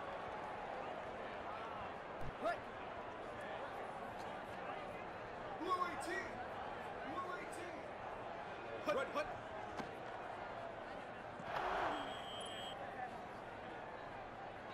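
A stadium crowd murmurs and cheers steadily throughout.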